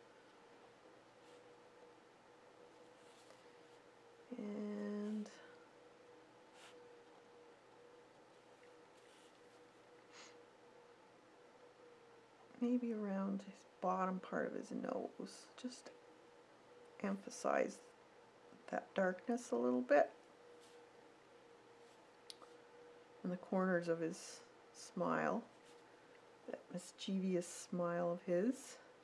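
A fine brush strokes softly on paper.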